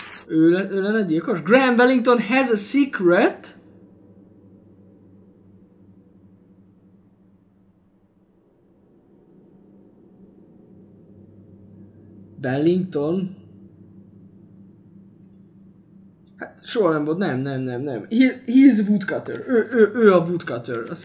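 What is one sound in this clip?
A young man talks with animation into a microphone, in short bursts.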